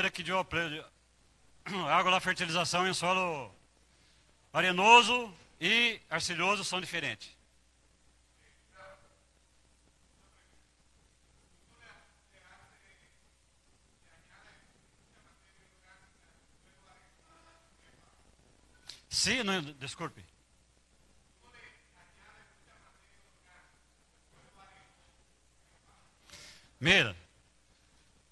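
A middle-aged man speaks with animation into a microphone over loudspeakers in a large echoing hall.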